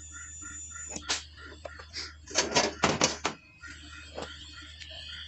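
Metal pipes clank and knock as they are moved.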